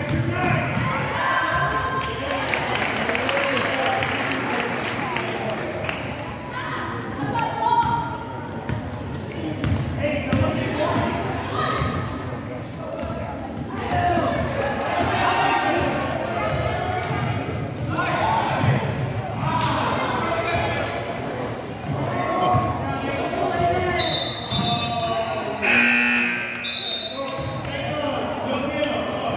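Spectators chatter in an echoing gym.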